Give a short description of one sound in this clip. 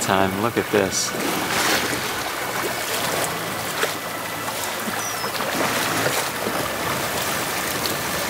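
Waves wash against a boat's hull.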